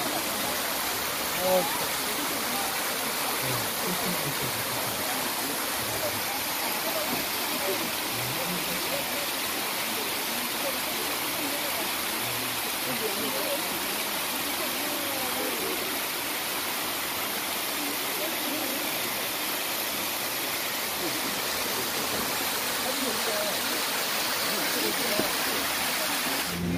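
Water rushes steadily over rocks close by, outdoors.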